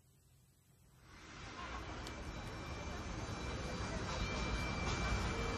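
A saxophone plays a melody.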